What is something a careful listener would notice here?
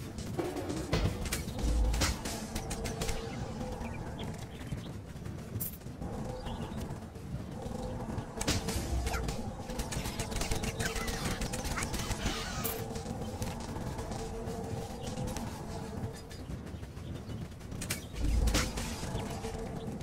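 Game combat sounds thud and clash.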